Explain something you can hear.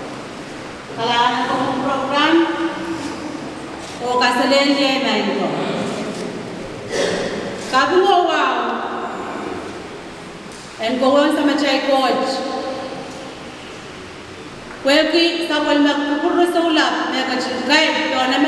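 A woman speaks into a microphone over a loudspeaker, in bursts with pauses, in a room with echo.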